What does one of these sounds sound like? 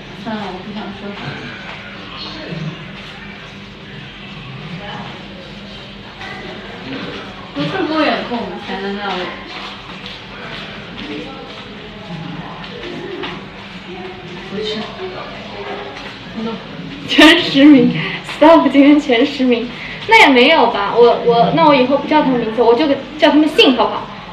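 A young woman talks close to a microphone, with animation.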